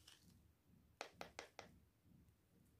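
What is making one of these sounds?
A spoon taps lightly against a glass jar.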